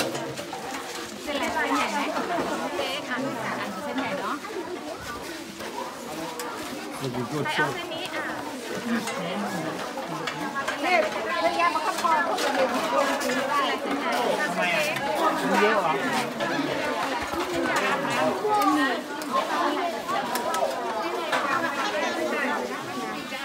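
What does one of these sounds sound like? Metal serving trays and spoons clink.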